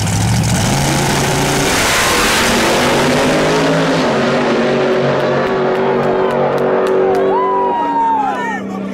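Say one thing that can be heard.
Race car engines roar loudly as the cars launch and speed away.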